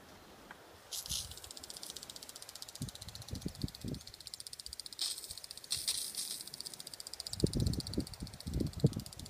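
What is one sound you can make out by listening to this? A lawn sprinkler sprays water with a fast ticking hiss.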